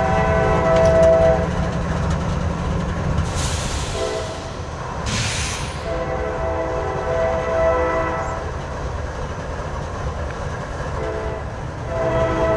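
A diesel train horn blows loud, repeated blasts close by.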